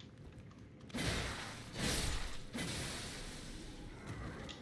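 A sword swings and clashes in combat.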